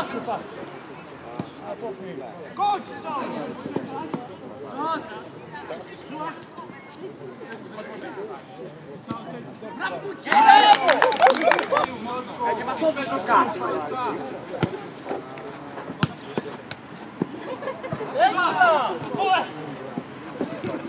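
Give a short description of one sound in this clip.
Young men shout and call out to each other across an open pitch.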